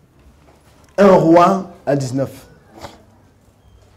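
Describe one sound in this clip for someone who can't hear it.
A man preaches loudly through a microphone in a large echoing hall.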